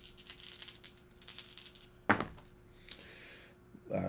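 Dice clatter and roll onto a hard tray.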